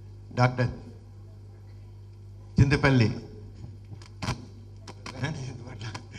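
A man speaks through a microphone over loudspeakers, with pauses.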